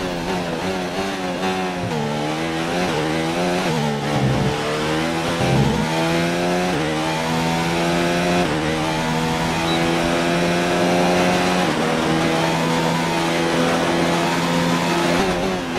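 A racing car engine screams, rising through the gears with quick downshifts and bursts of revs.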